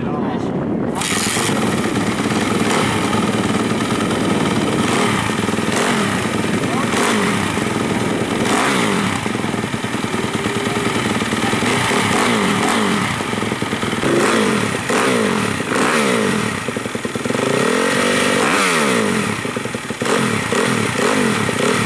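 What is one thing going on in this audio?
A dirt bike engine starts and idles with a loud, rough rattle.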